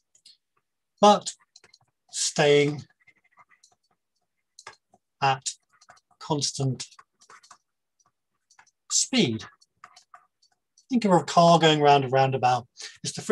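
A man talks calmly into a microphone over an online call, pausing between phrases.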